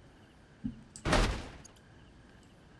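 A heavy wooden piece thuds into place with a rushing whoosh.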